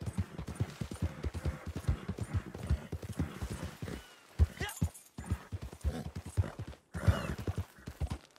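Horse hooves thud steadily on grass and dirt.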